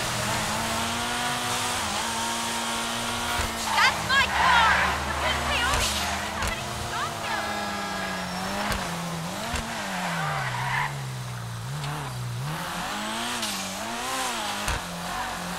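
A sports car engine revs hard, shifting gears and slowing for a bend.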